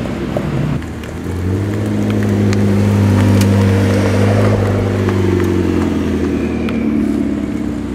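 A sports car engine roars as the car accelerates past.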